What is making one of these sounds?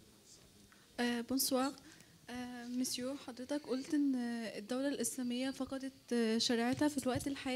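A woman speaks with animation into a microphone, heard over loudspeakers in an echoing hall.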